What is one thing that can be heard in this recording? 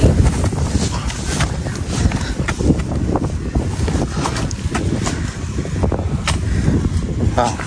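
A digging tool scrapes and thuds into dry soil.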